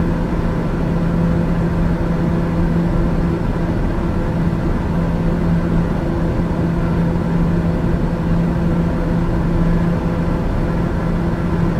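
An aircraft engine drones steadily with a low hum.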